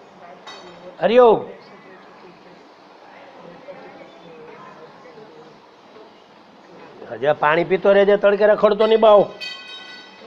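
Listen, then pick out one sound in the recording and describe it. An older man speaks and chants loudly through a microphone.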